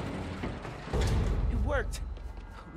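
A heavy thump hits the ground.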